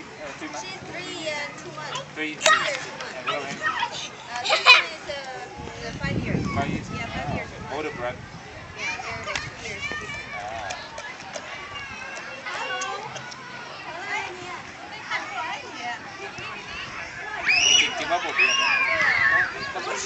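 Young children chatter and shout outdoors.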